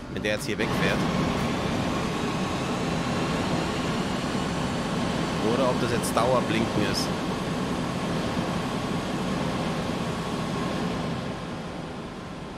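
A train rumbles and squeals as it pulls away, then fades.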